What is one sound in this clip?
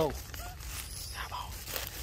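A young monkey squeaks close by.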